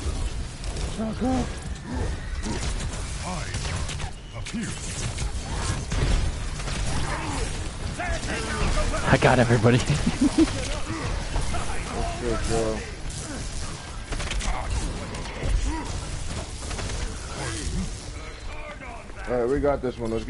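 Gunfire pops and bangs nearby.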